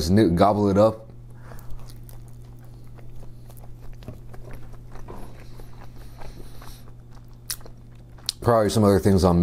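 A young man chews and crunches food close to a microphone.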